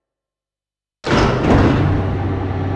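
A heavy lift machine starts up with a loud metallic clank.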